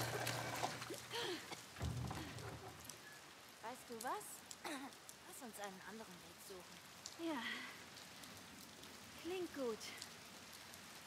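A second young girl answers quietly.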